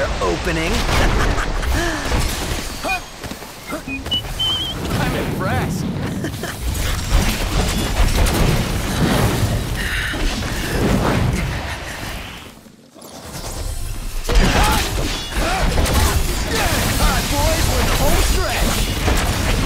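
Sword blows slash and clang against a giant snake's scales.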